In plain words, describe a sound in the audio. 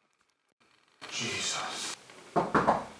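A man exclaims nearby.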